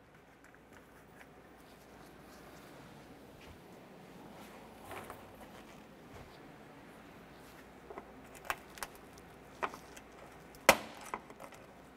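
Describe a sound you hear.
Plastic clips snap and click as they are pried loose.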